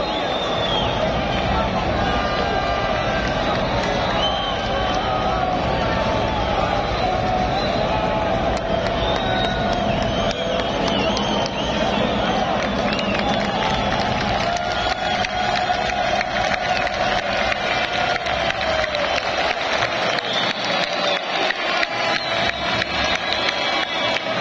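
A large crowd sings and chants loudly in an open stadium.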